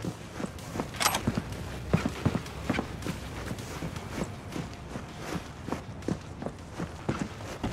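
Footsteps thud on hard ground at a steady walking pace.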